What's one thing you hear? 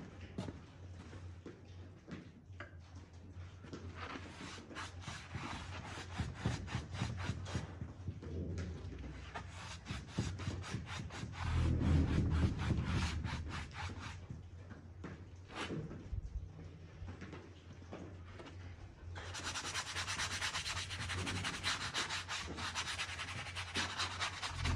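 A brush scrapes in quick strokes across a canvas.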